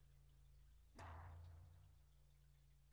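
A heavy magical blast strikes and rumbles away.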